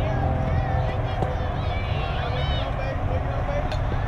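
A softball bat cracks against a pitched ball.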